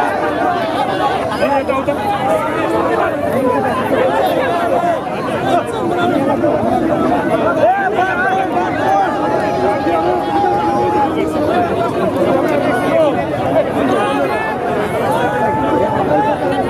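A man shouts a slogan close by.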